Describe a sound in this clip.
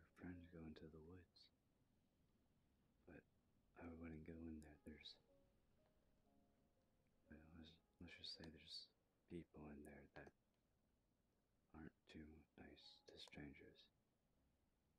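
A young man talks casually into a microphone in short bursts.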